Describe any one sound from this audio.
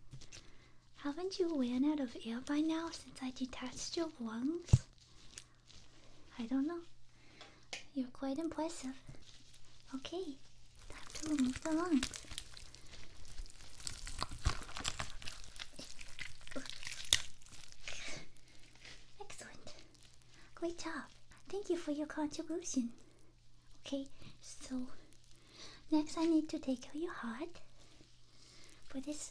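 A young woman speaks softly and close, her voice slightly muffled.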